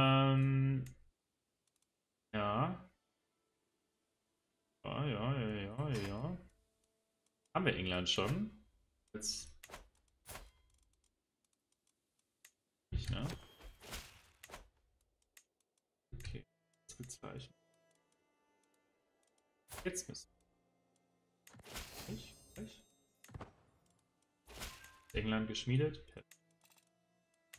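A young man speaks calmly into a close microphone, in short bursts.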